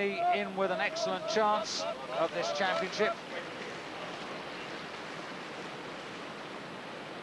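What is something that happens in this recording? White water rushes and churns loudly.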